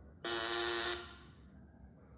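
A short electronic censor bleep sounds.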